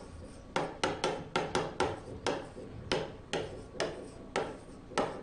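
A pen taps against a board while writing.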